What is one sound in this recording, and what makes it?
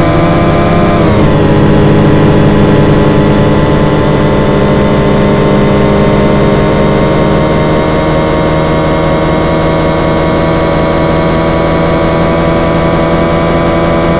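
A car engine roars loudly at high revs, its pitch dropping after a gear change and then slowly climbing.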